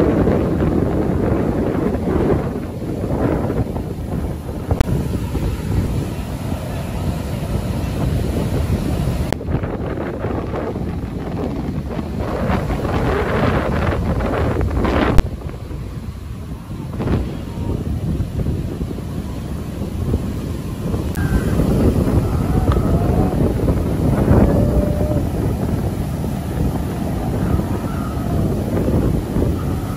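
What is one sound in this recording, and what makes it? Waves crash and roll onto the shore.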